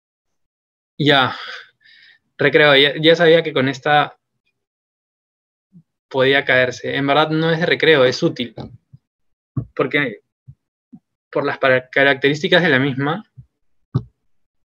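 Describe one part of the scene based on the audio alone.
A young man speaks calmly through an online call microphone.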